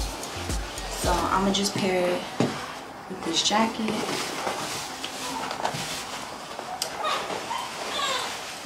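Clothes rustle as they are handled.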